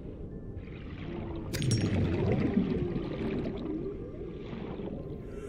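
A deep underwater rumble with bubbling water goes on throughout.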